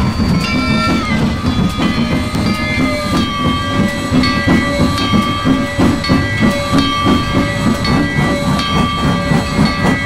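A steam locomotive chugs steadily along the track.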